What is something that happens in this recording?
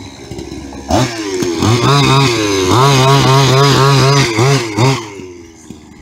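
A toy car's electric motor whines loudly, revving up and down.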